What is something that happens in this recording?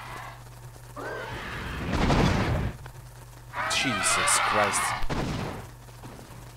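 Bats screech and flutter in a swarm.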